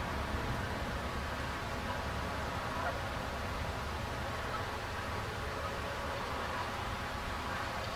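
Geese honk softly nearby.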